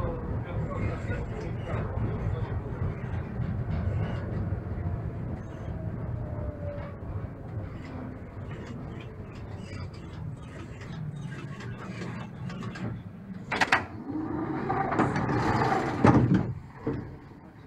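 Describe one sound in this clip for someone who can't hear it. A tram rumbles and clatters along rails.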